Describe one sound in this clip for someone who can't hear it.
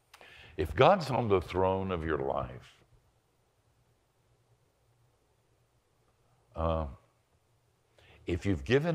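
An elderly man speaks calmly and thoughtfully into a close microphone, with pauses.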